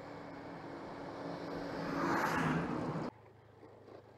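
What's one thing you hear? A heavy truck rumbles past close by.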